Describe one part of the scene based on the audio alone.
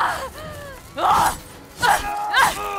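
A woman cries out loudly and close by.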